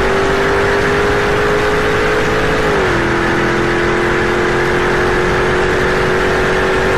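A car engine roars loudly at high speed, dropping in pitch briefly as a gear shifts and then climbing steadily.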